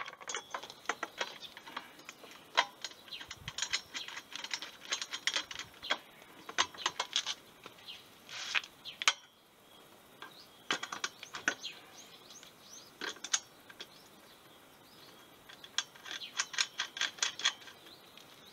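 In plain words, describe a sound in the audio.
Metal parts click and rattle as a frame is handled and fitted together.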